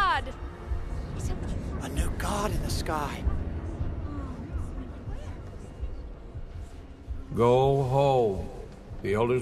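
A crowd of voices murmurs and cries out in a large echoing hall.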